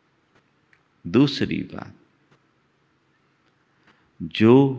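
An elderly man speaks calmly into a microphone, in short phrases.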